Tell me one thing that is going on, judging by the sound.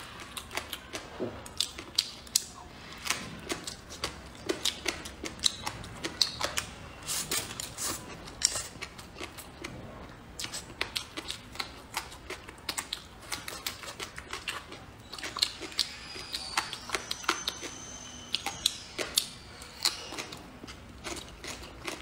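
A young woman chews and slurps food noisily close to the microphone.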